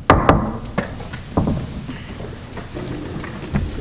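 Folding seats knock as people sit down.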